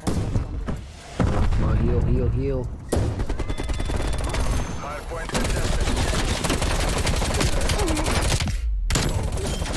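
Rifles fire in rapid, loud bursts.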